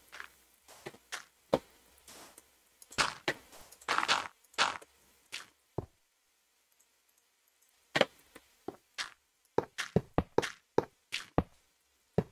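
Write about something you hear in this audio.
Stone blocks are placed and broken with short, dull knocks in a quick, uneven rhythm.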